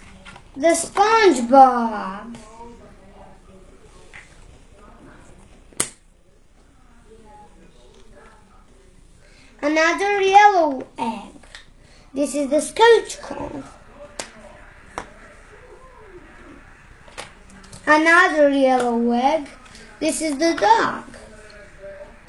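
A young girl speaks close by in short, lively bursts.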